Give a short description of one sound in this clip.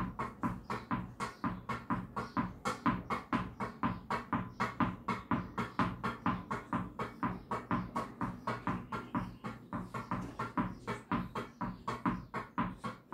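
A tennis ball thuds against a wall again and again.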